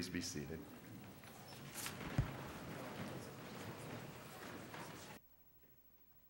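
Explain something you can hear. A crowd murmurs and shuffles in a large echoing hall.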